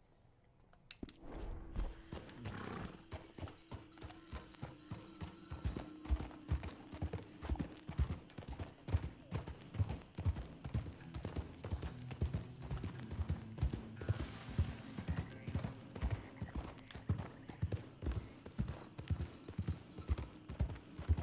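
Horse hooves thud steadily at a gallop on soft ground.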